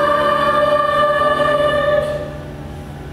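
A children's choir sings a held final note that echoes in a large hall.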